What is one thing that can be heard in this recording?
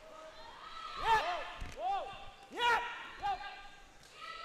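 Men shout loudly to each other, echoing in a large hall.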